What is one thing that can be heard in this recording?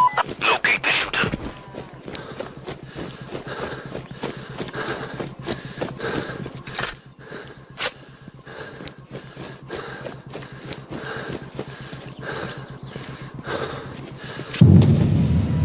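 Footsteps tread steadily through grass and brush.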